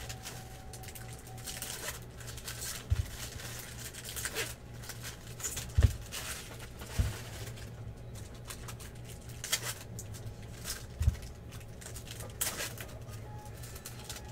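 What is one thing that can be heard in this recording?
Cards rustle and slide as they are handled.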